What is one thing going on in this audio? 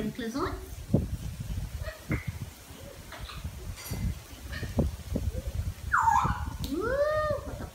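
A blue-and-gold macaw makes chattering, squawking calls close by.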